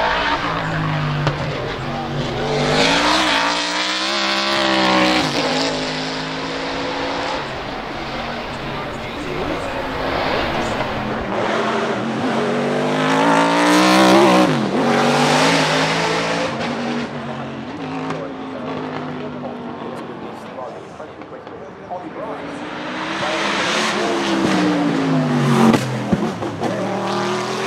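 A racing car engine roars loudly as it passes close by, rising and falling in pitch.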